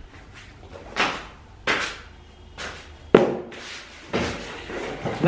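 A cardboard box rattles and thumps as it is handled.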